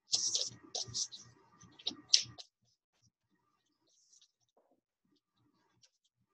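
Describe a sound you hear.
Cards shuffle and rustle in a woman's hands.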